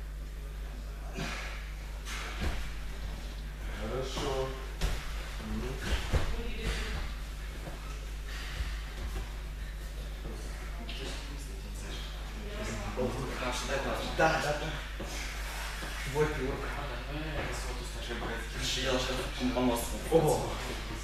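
Young men talk with each other in a large echoing hall.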